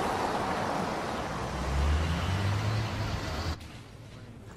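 A car drives past on a street.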